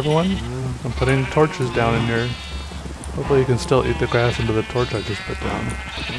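Sheep bleat nearby.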